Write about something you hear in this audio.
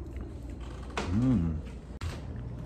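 A man lets out a short, drawn-out vocal groan close by.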